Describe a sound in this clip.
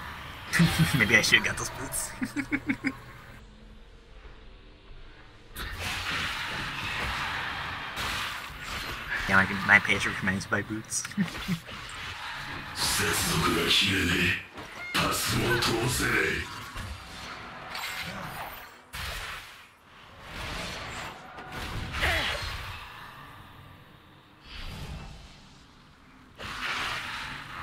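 Spell effects whoosh and crackle in a video game.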